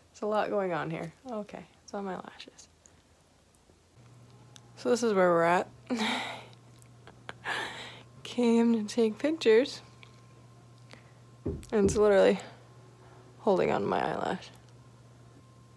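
A young woman talks softly and with animation close to a microphone.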